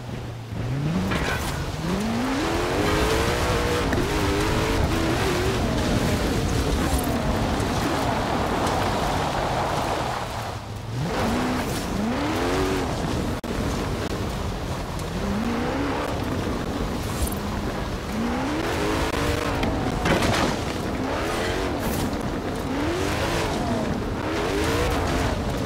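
Tyres rumble over rough grass.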